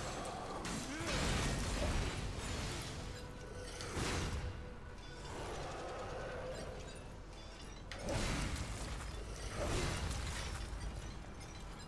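A giant creature stomps heavily.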